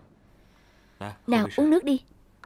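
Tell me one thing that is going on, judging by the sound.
A young woman sobs close by.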